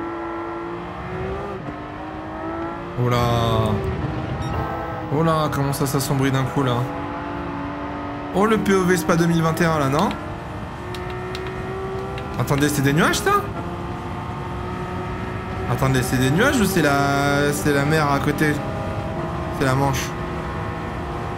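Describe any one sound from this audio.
A racing car engine roars steadily and climbs in pitch as it speeds up.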